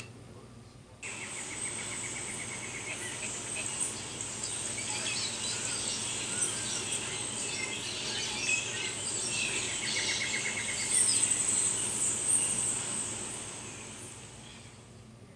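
Birds chirp and call in a forest, heard through a television speaker.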